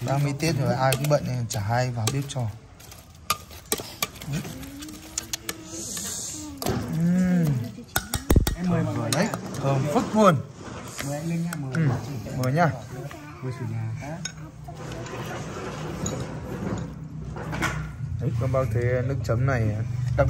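A metal spoon scrapes and clinks against a metal pot.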